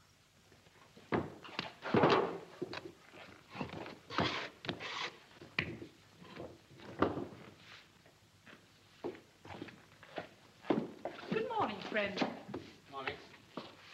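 Dough thumps and slaps on a table.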